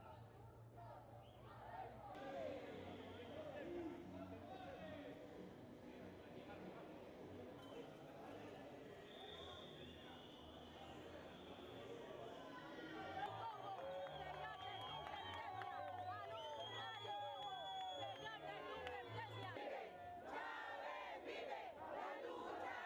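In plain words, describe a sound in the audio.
A crowd of men talk and shout over one another close by.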